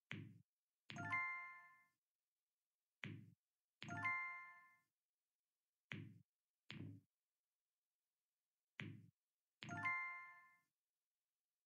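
A bright chime rings out when a tube is filled.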